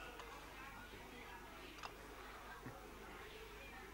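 A porcelain teacup lid clinks softly.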